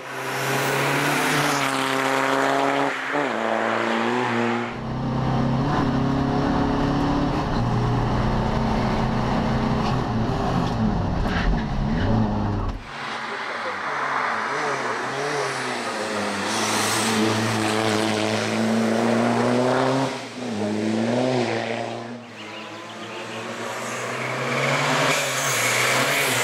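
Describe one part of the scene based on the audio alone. A rally car engine roars loudly as it races past and shifts gears.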